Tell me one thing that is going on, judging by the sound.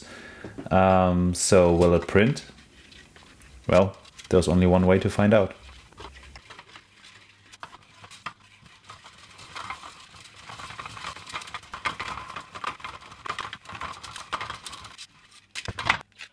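A plastic spool clicks and rattles as it is handled.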